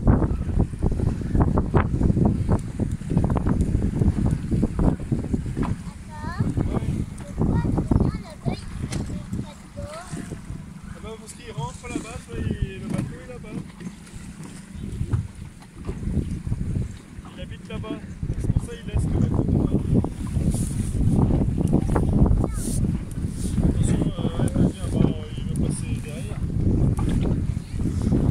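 Choppy water splashes and laps against a boat's hull.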